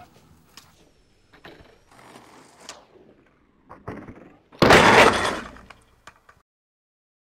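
A skateboard clacks and rolls over concrete.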